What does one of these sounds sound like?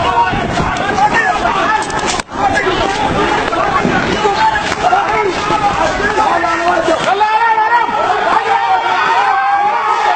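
A crowd of men shout and yell loudly nearby, outdoors.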